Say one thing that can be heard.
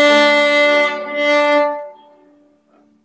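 A violin plays a sustained note up close.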